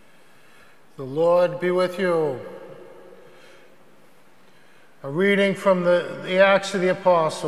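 A middle-aged man chants slowly through a microphone in an echoing room.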